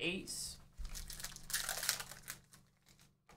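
A foil card pack crinkles as it is torn open.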